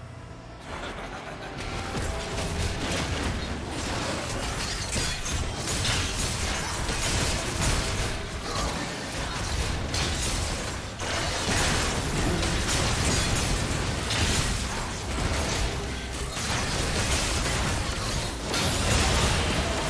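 Video game combat sound effects clash and crackle.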